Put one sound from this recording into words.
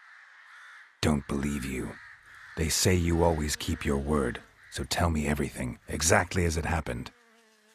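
A man speaks calmly in a low, gravelly voice.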